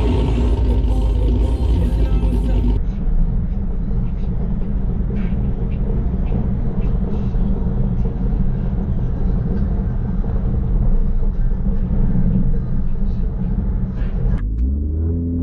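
A car engine rumbles steadily while driving slowly.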